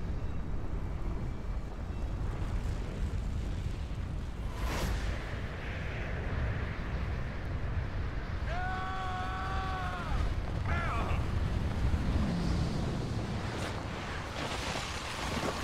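Wind rushes and roars steadily.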